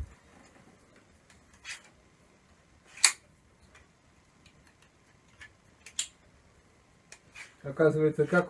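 Hard parts click and clack as they are handled.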